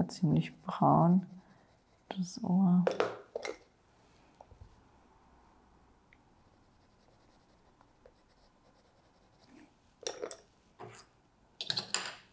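Wooden pencils clack together as they are picked up and put down.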